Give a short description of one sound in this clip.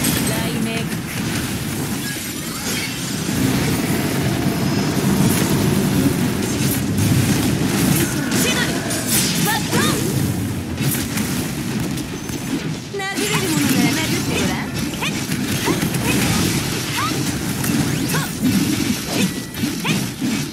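Game sword slashes and magic blasts crash and boom rapidly.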